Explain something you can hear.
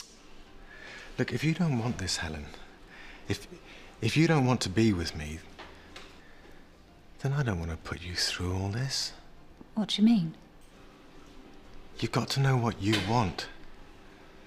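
A man speaks softly and intimately, close by.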